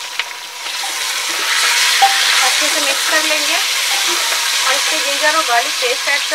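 A spatula scrapes and stirs meat against a metal pot.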